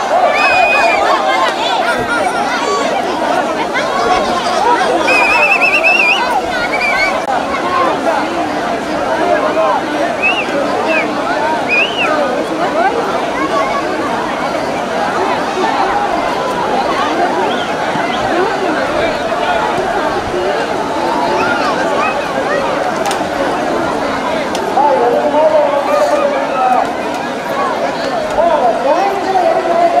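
A large outdoor crowd of men and women chatters and shouts all around.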